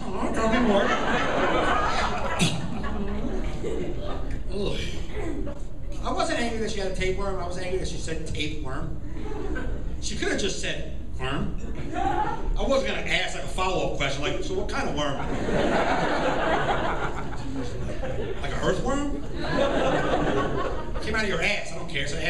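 A man talks with animation into a microphone, heard over loudspeakers in a large room.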